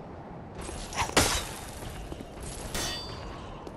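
A lamp flares up with a bright whoosh.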